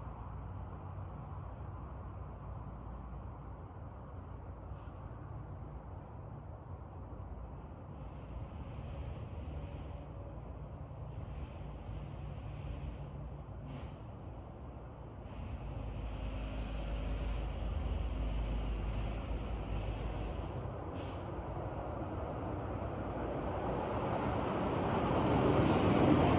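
Wind rustles through leafy trees outdoors.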